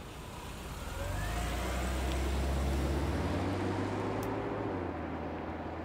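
A car engine hums as a car drives slowly past.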